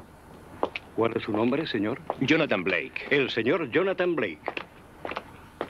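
Another man speaks calmly.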